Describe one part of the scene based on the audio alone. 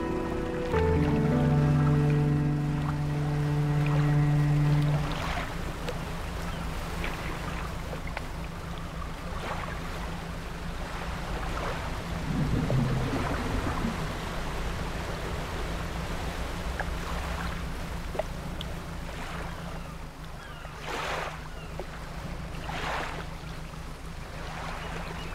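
Water splashes around a moving boat's hull.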